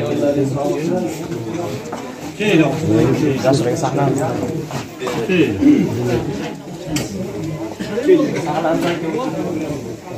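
Several men talk nearby, outdoors.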